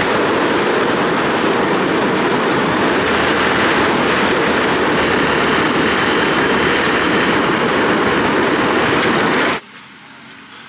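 A motorcycle engine drones steadily along a road.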